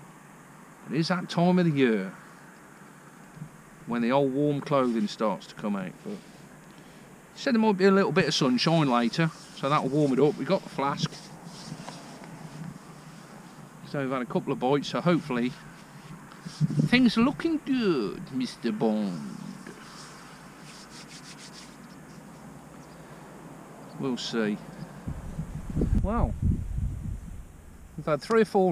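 A middle-aged man talks calmly close by, in short bursts with pauses.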